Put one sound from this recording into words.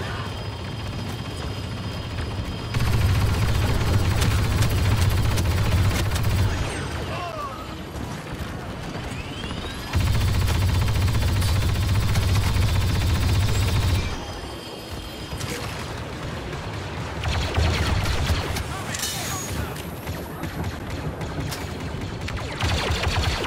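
Blaster fire zaps and crackles in rapid bursts.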